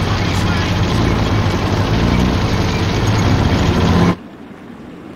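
A tank engine rumbles loudly.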